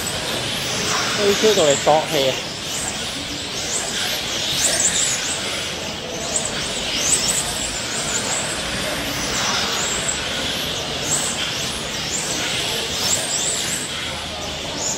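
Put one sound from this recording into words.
Small electric racing cars whine loudly, rising and falling in pitch as they speed up and slow down.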